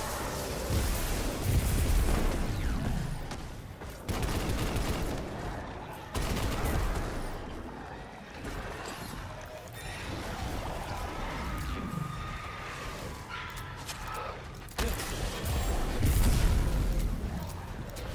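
Electric energy crackles and explodes.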